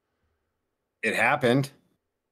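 Another man speaks briefly over an online call.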